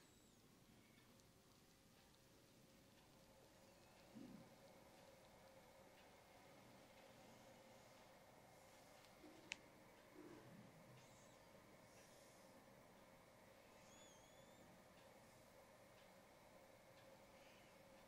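Fingers softly rub and press on a man's forehead and scalp.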